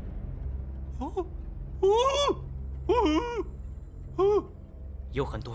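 A man lets out muffled, strained cries through a gag.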